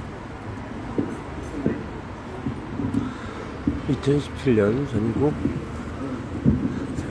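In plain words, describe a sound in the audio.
A man speaks through a microphone and loudspeakers outdoors.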